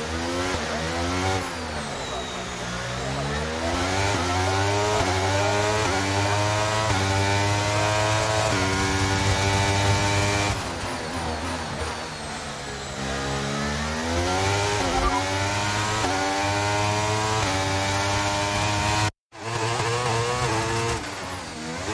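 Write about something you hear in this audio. A racing car engine screams, rising and falling in pitch as the gears shift.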